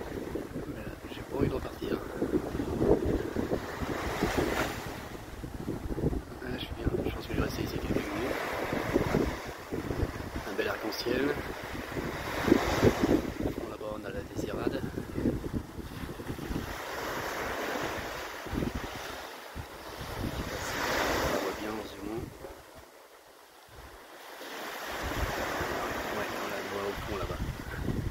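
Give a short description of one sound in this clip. Waves wash and break on a sandy shore.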